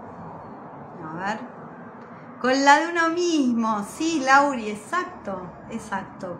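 A woman speaks warmly and close by.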